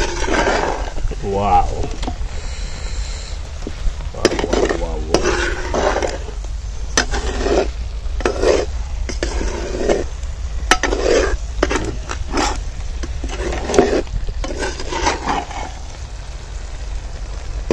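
A metal ladle scrapes and knocks against a clay pot.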